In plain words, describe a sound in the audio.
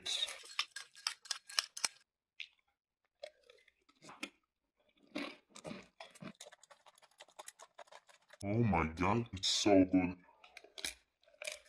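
A young man slurps and chews noodles.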